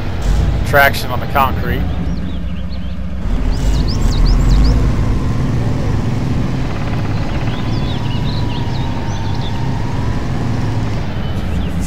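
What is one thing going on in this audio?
Truck tyres churn through mud.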